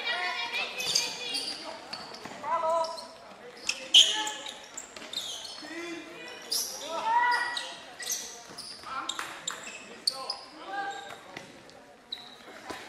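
Young women call out and shout to each other in a large echoing hall.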